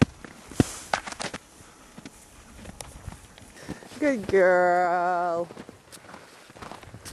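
Hooves crunch through snow.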